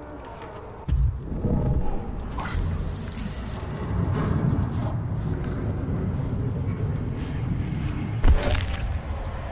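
Electricity crackles and buzzes in bursts.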